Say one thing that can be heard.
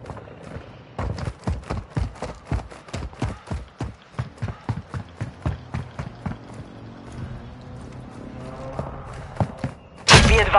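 Quick footsteps run over hard ground.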